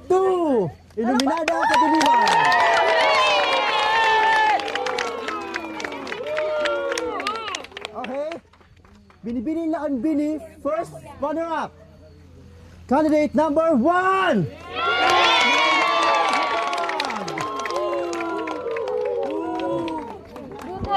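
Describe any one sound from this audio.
A crowd cheers and screams excitedly.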